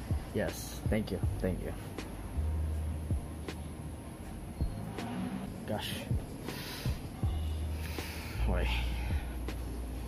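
A young man talks softly close by.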